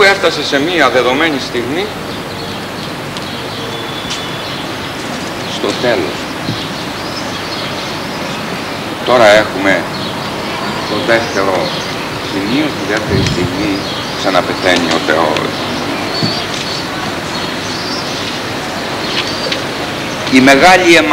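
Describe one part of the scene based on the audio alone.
A middle-aged man speaks with animation outdoors, in pauses.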